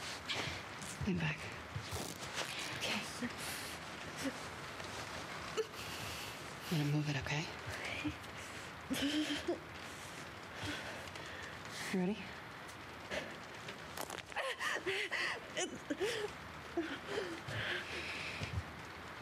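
A woman speaks quietly and calmly nearby.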